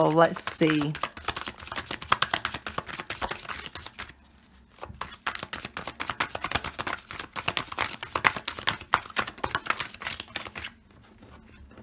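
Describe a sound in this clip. A deck of cards is shuffled with quick, crisp clicks.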